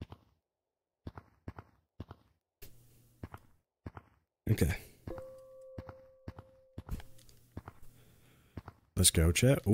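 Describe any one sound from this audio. Hands slap and thud against rock in quick grabs.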